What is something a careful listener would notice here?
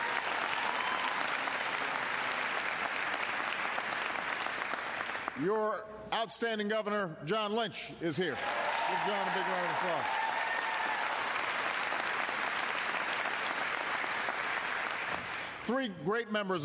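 A crowd applauds and cheers loudly in a large hall.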